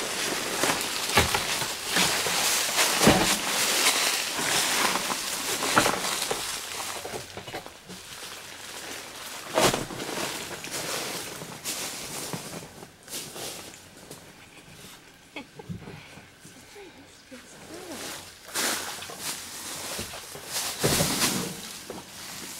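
A small animal rustles and crunches through dry leaves close by.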